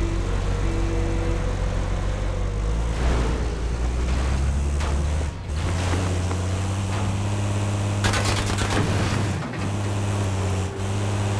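A heavy vehicle engine rumbles steadily as it drives along a gravel road.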